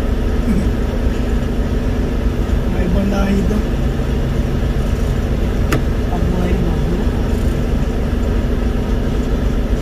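A diesel semi-truck rumbles as it approaches.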